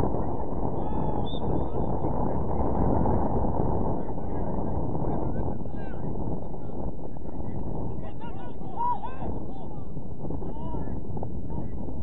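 Men shout to each other far off across the field.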